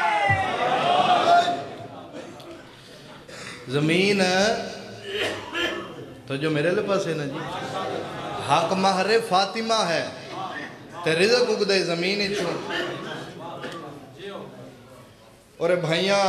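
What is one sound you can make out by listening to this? A young man recites with passion through a microphone, his voice echoing through loudspeakers.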